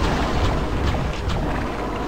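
A monster explodes with a wet splatter.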